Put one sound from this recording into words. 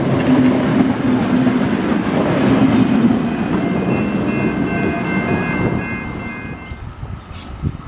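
An old electric train rumbles loudly past close by.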